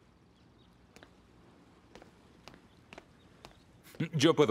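Footsteps tap softly across a floor.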